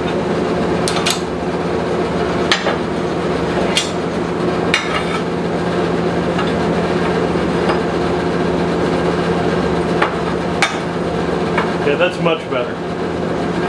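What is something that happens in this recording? Metal clanks sharply against metal.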